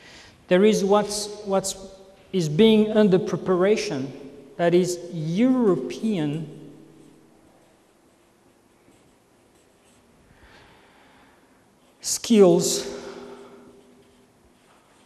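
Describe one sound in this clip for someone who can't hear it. A man lectures with animation in an echoing room.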